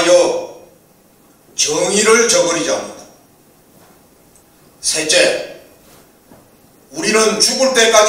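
An older man speaks into a microphone in short, measured phrases with pauses between them.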